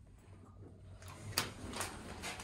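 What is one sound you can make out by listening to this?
A finger presses a lift button with a click.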